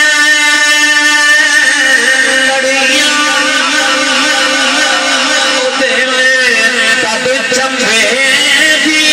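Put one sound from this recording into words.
A man chants in a long, sustained melodic voice through a loudspeaker microphone.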